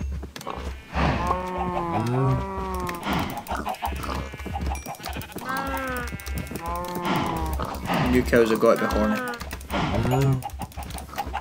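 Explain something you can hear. Several cows moo repeatedly close by.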